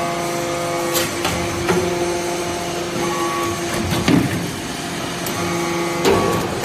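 A metal ram clanks as it presses down.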